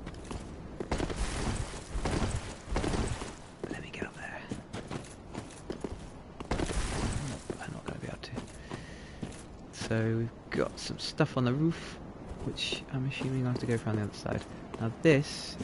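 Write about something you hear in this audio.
Heavy armoured footsteps clank and crunch on the ground.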